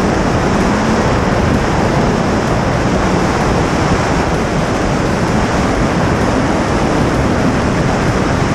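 Wind roars loudly past a moving car.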